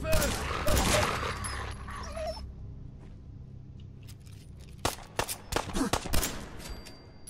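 Gunshots fire loudly, echoing in a tight space.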